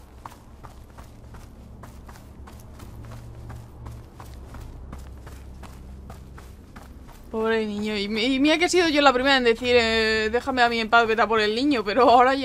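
Footsteps crunch steadily on grass.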